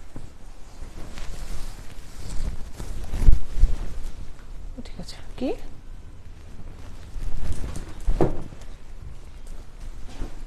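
Silk fabric rustles as it is shaken and draped.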